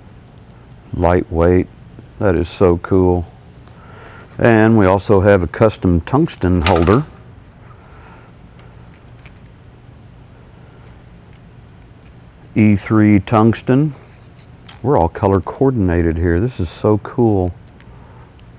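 An older man speaks calmly and clearly close to a microphone, in short phrases with pauses.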